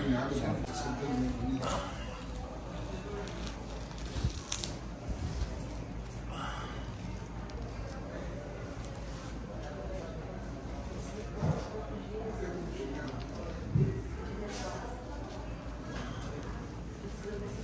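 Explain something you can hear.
Gauze bandage rustles and crinkles as it is unwrapped.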